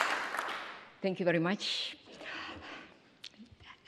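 A woman begins to speak through a microphone.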